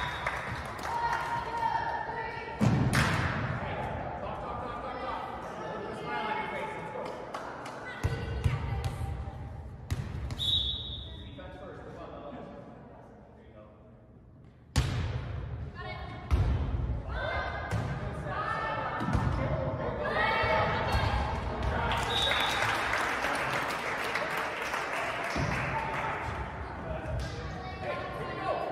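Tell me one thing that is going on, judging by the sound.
A volleyball is hit with sharp smacks in a large echoing hall.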